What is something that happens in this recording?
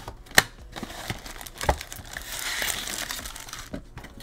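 Plastic-wrapped card packs crinkle and rustle in a hand.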